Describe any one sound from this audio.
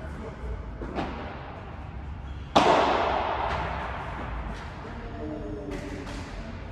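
Paddles strike a ball with sharp pops that echo through a large hall.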